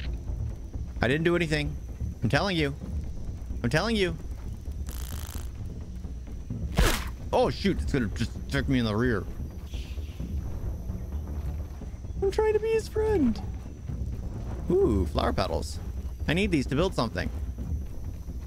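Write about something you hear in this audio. A man talks with animation, close to a microphone, pausing between short phrases.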